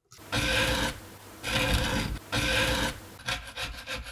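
A metal scraper rasps along the edge of a wooden guitar body.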